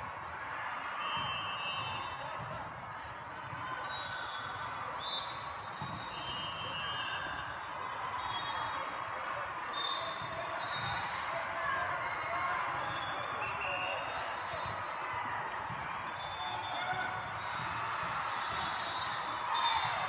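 Players' shoes squeak sharply on the court.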